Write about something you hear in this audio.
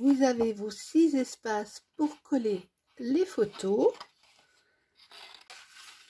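Stiff card rustles as it is folded.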